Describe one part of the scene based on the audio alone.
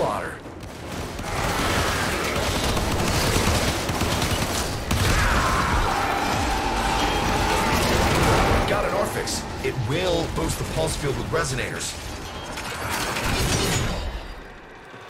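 Explosions and energy blasts boom and crackle.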